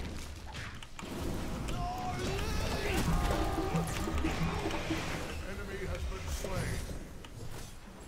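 Game spells blast and clash in a fight.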